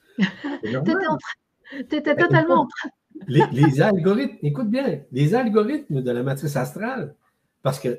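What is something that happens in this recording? An elderly woman laughs heartily over an online call.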